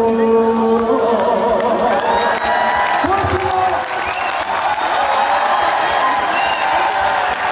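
A young man sings into a microphone.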